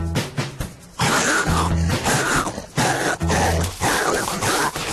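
A cartoon lion yells in panic.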